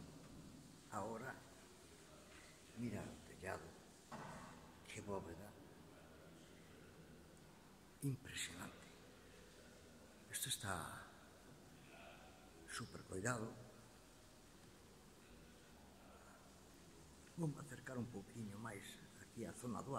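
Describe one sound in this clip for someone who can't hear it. An older man speaks close by in short bursts with animation, his voice echoing in a large hall.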